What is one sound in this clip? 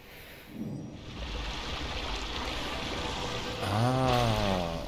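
Molten lava pours down with a low, roaring hiss.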